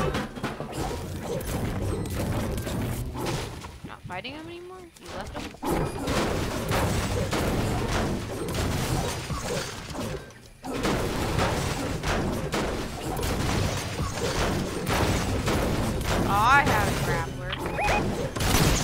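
A game character swings a pickaxe with sharp whacks and clangs.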